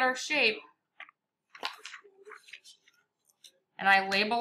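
Sheets of paper rustle as they are turned over.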